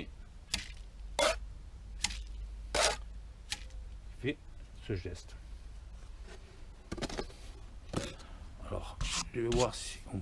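A metal trowel taps and scrapes against mortar.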